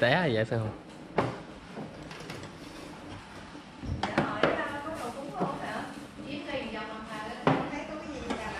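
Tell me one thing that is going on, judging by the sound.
Ceramic bowls clink as they are set on a table.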